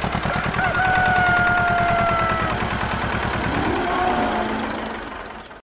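A tractor engine chugs steadily.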